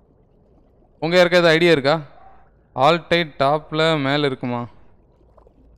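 A young man speaks loudly and with animation into a microphone, close up.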